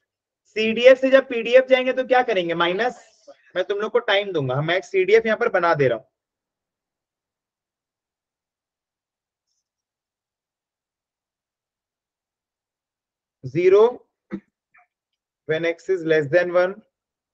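A young man speaks calmly through a microphone, as if explaining.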